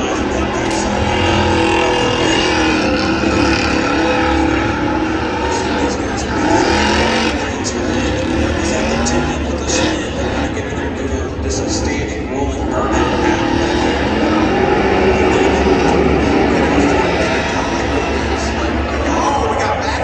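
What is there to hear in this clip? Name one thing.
Tyres squeal and screech in a burnout.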